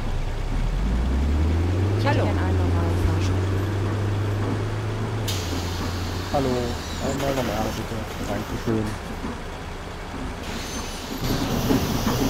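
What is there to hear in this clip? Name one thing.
A bus engine idles with a low steady rumble.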